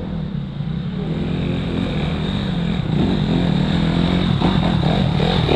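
Another dirt bike engine approaches and grows louder.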